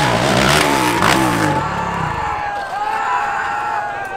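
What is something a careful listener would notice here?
A dirt bike crashes onto rocky ground.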